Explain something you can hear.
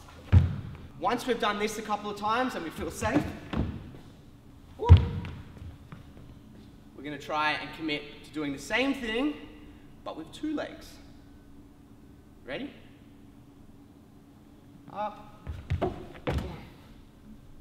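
Sneakers thud and squeak on a wooden floor.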